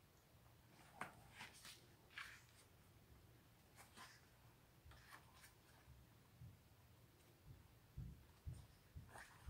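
Paper pages rustle and flip close by.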